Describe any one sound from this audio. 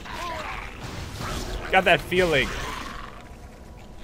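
A magical spell whooshes and crackles.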